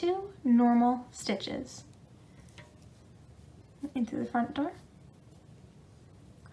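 Knitting needles click softly against each other.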